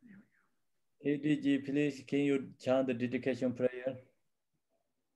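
A man chants slowly over an online call.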